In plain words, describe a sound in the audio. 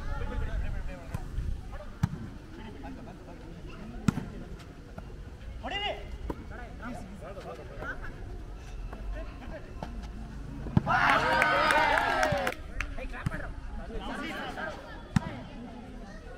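A volleyball is struck by hand with sharp slaps.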